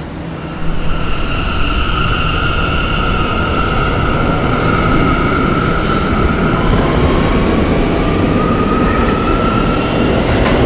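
A subway train's motor whines, rising in pitch as the train speeds up.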